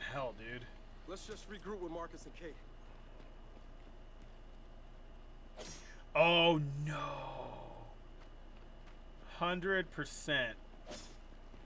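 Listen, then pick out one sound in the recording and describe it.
A man talks casually into a headset microphone, close by.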